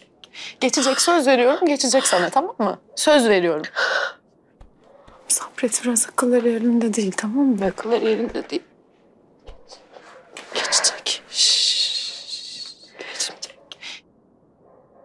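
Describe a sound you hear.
A young woman speaks urgently and emotionally up close.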